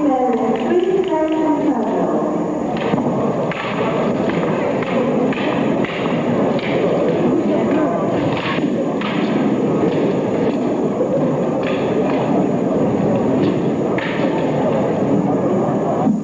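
A large crowd murmurs and cheers in an echoing hall.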